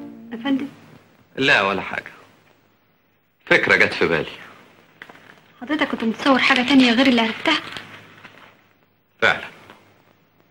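A young woman speaks close by, earnestly and with feeling.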